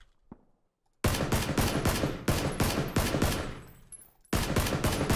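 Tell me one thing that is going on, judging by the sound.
Rapid automatic gunfire rings out in loud bursts.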